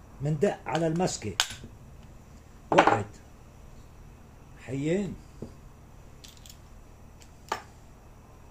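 Metal tools clink and knock against a table.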